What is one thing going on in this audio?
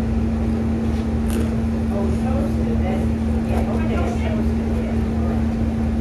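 A woman crunches on crisp chips up close.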